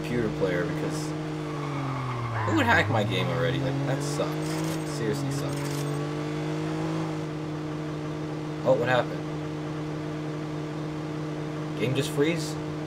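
A car engine hums steadily and its pitch dips and rises as it drives.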